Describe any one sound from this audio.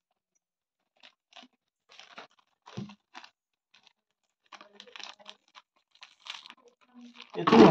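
A wrapper crinkles softly in small hands.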